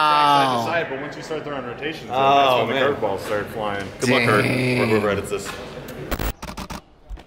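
A young man talks with animation close by, his voice echoing slightly.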